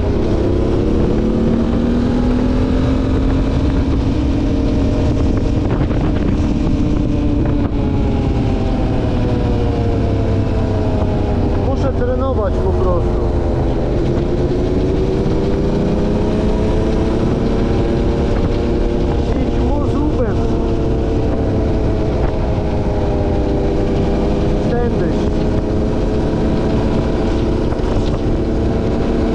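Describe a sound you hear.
A quad bike engine drones steadily up close, its pitch rising and falling with the throttle.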